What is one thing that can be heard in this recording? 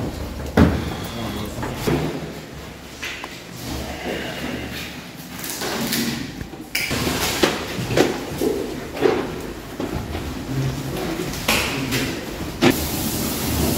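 Several young men talk and call out in an echoing room.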